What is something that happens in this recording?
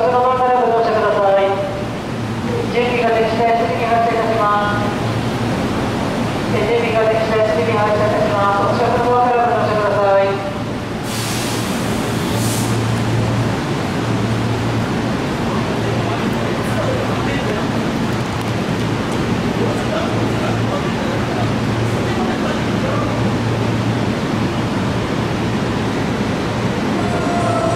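Footsteps tap on a hard platform.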